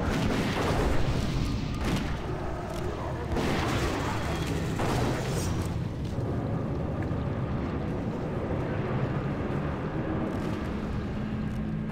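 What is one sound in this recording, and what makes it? Weapons strike in quick blows.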